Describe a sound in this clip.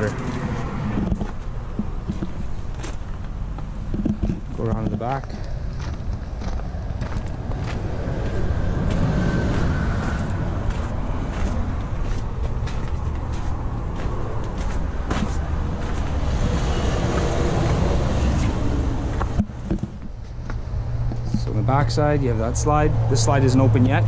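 Footsteps crunch slowly on gravel.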